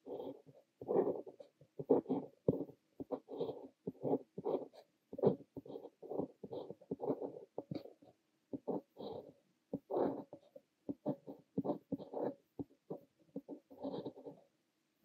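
A fountain pen scratches softly across paper in short strokes.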